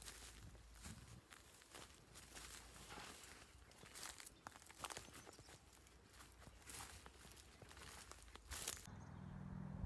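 Leafy branches brush and rustle close by.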